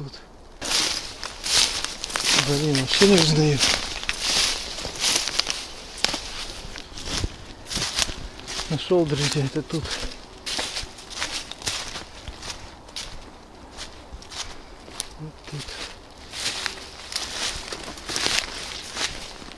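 Footsteps crunch and rustle through dry grass outdoors.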